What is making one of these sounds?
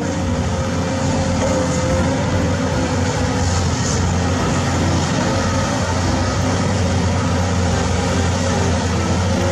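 A diesel crawler bulldozer engine rumbles under load while pushing earth.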